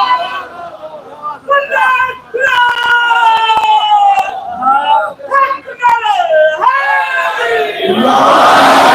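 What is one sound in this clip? A man sings a mournful chant loudly through a microphone.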